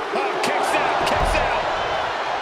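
A wrestler's body slams onto the ring mat with a heavy thud.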